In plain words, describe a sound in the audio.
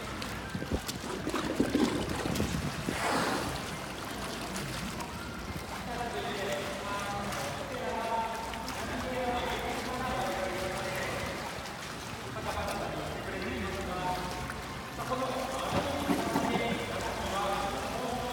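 Water splashes as an orca surfaces and swims close by.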